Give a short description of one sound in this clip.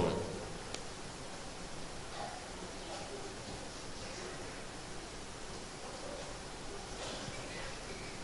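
A middle-aged man reads aloud calmly into a microphone in an echoing room.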